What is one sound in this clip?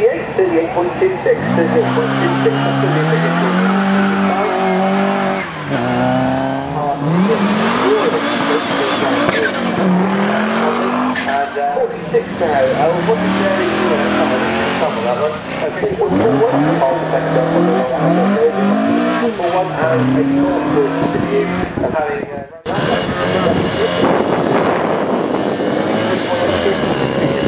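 Racing car engines rev hard and roar past one after another, outdoors.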